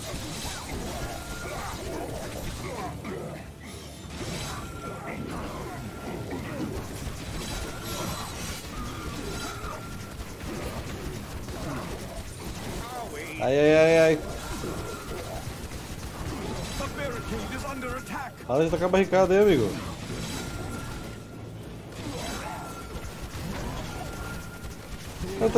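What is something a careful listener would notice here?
Game combat sounds clash and crackle.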